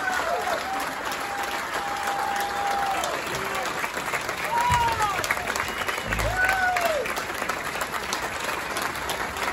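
A group of women sing together through loudspeakers in an echoing hall.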